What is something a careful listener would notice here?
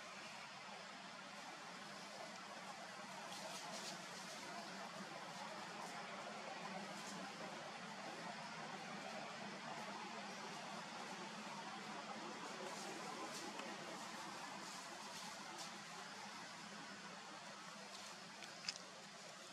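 Monkeys scamper and rustle through dry leaves on the ground.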